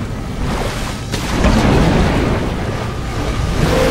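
Water bubbles and rumbles deep underwater.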